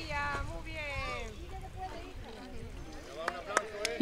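Water splashes as a child swims to the edge.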